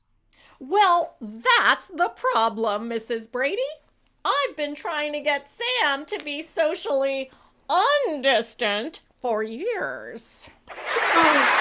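A middle-aged woman speaks with animation, close up.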